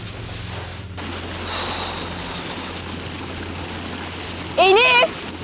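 A stream rushes and gurgles over rocks.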